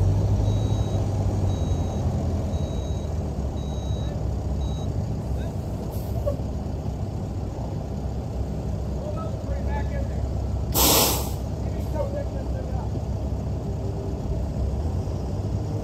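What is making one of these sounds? A pickup truck engine idles with a low, steady rumble outdoors.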